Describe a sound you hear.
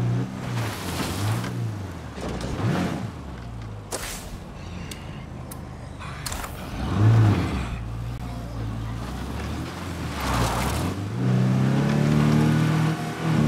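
A car engine hums and revs as the vehicle drives.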